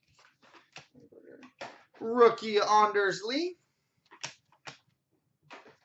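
Trading cards in plastic cases click and tap as they are handled.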